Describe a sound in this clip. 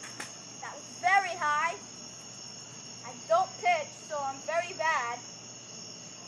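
A child shouts playfully in short bursts nearby outdoors.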